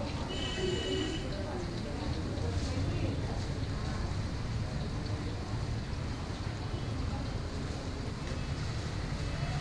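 Hot oil sizzles and bubbles steadily in a frying pan.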